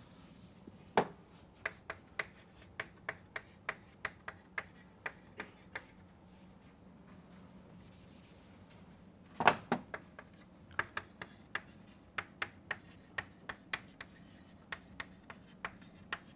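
Chalk taps and clicks sharply on a blackboard.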